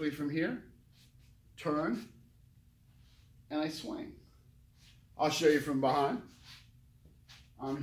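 A middle-aged man speaks calmly and clearly close by, in short phrases with pauses.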